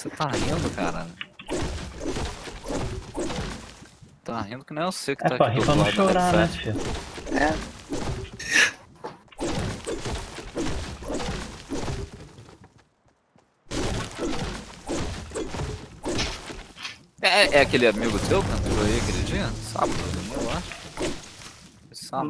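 A pickaxe chops repeatedly into a tree.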